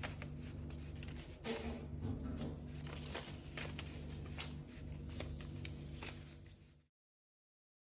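Paper banknotes rustle and flutter as they fall onto a soft surface.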